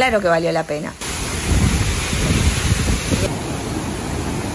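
A waterfall rushes and splashes steadily into a pool.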